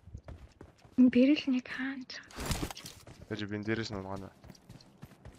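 A young man talks with animation into a microphone, close by.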